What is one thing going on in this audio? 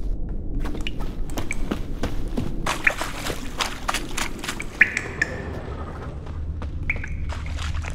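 Footsteps crunch on the ground.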